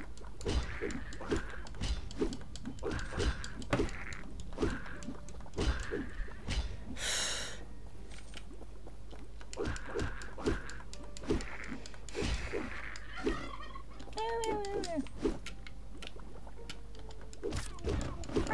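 Sword slashes whoosh and strike again and again.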